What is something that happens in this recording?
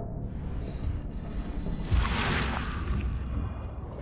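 Heavy footsteps tread on the ground.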